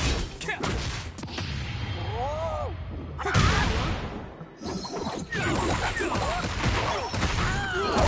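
Swift blows whoosh through the air.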